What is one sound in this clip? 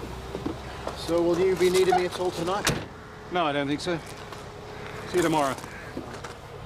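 An older man speaks in a strained voice.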